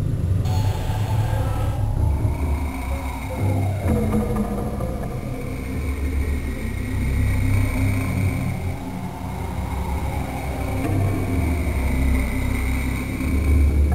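Heavy footsteps thud steadily on soft ground.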